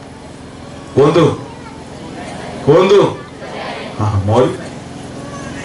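A middle-aged man speaks loudly and forcefully into a microphone, heard through loudspeakers outdoors.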